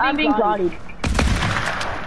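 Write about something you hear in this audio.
A gun fires shots.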